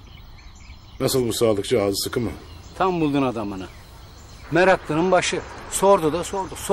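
A man speaks outdoors in a calm voice.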